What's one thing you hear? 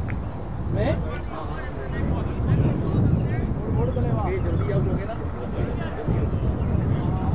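Men call out to each other at a distance outdoors.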